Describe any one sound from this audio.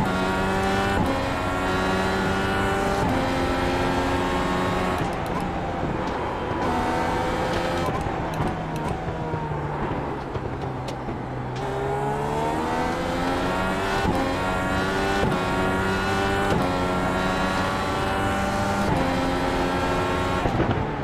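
A racing car engine screams, rising in pitch through each gear and dropping at every shift.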